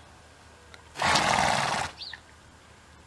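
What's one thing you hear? A rasp scrapes across a horse's hoof.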